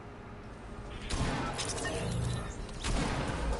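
Game sounds and music play loudly.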